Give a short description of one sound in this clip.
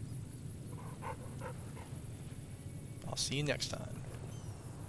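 A dog growls softly.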